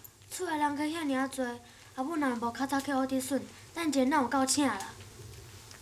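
A young girl speaks nearby with a worried tone.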